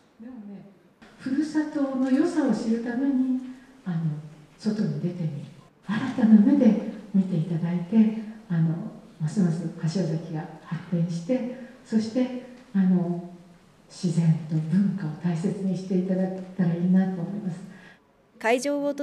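A middle-aged woman speaks calmly and warmly into a microphone.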